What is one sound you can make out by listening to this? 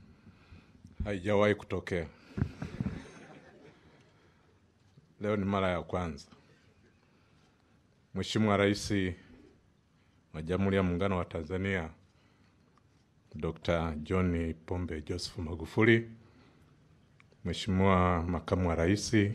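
A man speaks steadily into a microphone, heard through loudspeakers with pauses between phrases.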